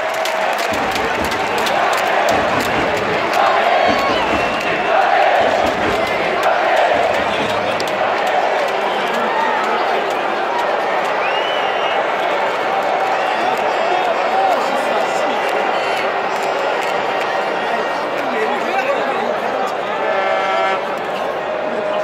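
A large crowd of fans chants and cheers loudly in an open stadium.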